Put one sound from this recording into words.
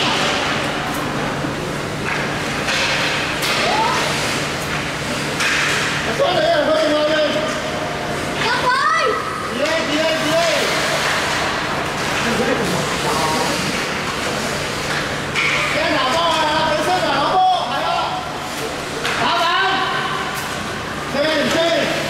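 Skates scrape and hiss across ice.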